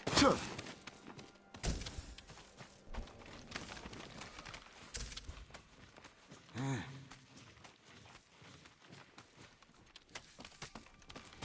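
Footsteps crunch on rock and dirt.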